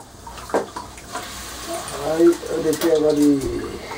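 A metal pot lid clinks as it is lifted off a pan.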